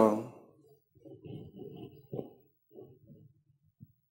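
A man speaks softly and briefly through a microphone.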